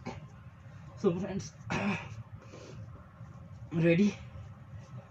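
A young man grunts and breathes hard with effort.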